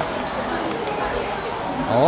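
A paper bag rustles.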